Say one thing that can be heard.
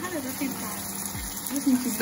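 A fork clinks against a pot.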